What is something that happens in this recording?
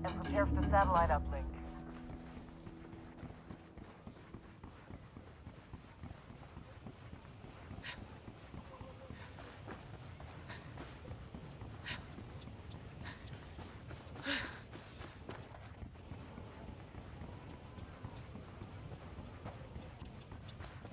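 Footsteps patter quickly on pavement.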